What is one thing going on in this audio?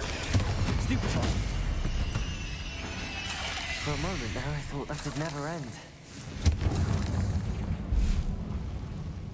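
Magic spells blast and crackle in quick bursts.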